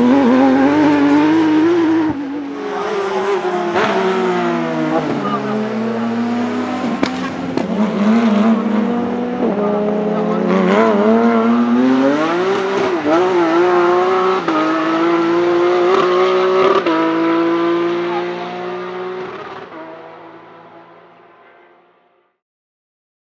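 A race car engine roars loudly at high revs.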